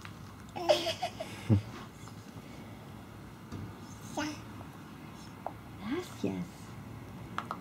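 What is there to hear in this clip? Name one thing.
A toddler girl babbles and chatters nearby.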